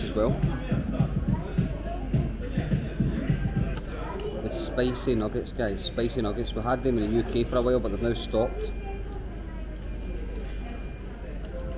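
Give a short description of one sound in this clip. A young man chews food with his mouth open.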